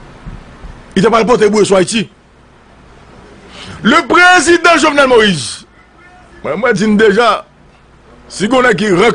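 A man speaks forcefully into a microphone close by, in short bursts.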